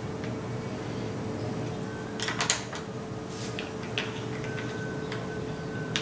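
A hex key scrapes and turns in a bolt.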